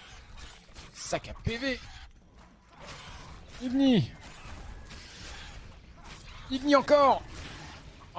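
A monstrous creature lets out shrill, rising and falling screeches.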